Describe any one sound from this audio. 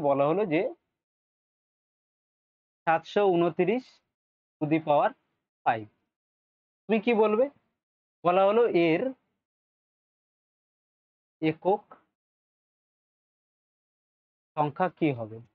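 A man speaks calmly and clearly into a close microphone, pausing between phrases.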